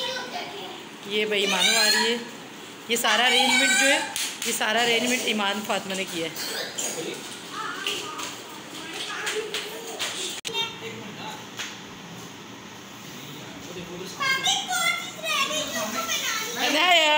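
A young girl talks and calls out excitedly nearby.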